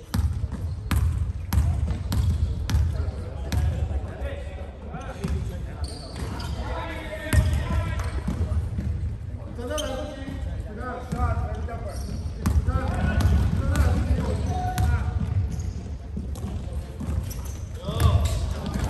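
A basketball bounces repeatedly on a hard floor in a large echoing gym.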